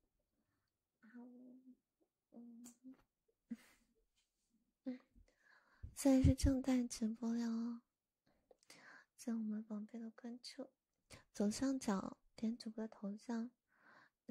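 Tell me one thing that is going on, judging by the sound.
A young woman speaks softly, close to a microphone.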